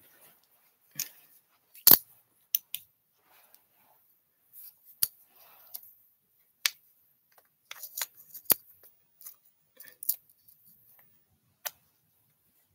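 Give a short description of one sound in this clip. A lighter clicks and flicks repeatedly close by.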